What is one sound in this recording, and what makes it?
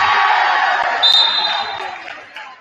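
A referee's whistle blows a short blast.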